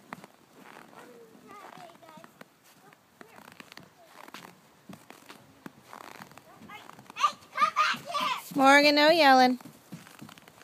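A young child calls out excitedly nearby.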